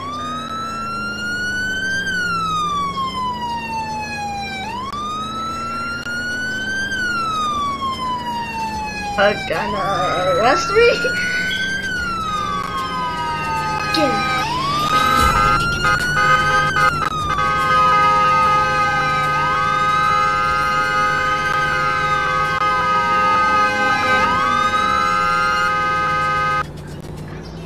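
A police siren wails, rising and falling over and over.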